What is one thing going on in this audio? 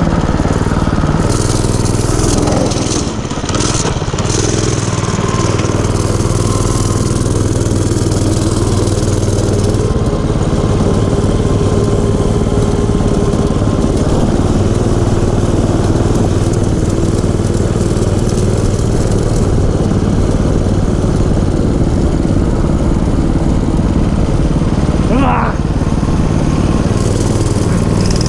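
A small motor engine drones steadily close by.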